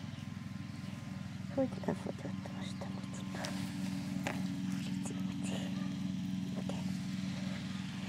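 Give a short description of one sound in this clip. Footsteps swish through grass close by.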